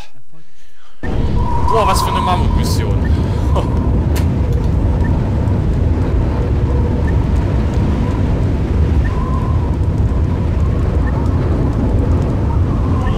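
Fires roar and crackle outdoors in a low, steady rumble.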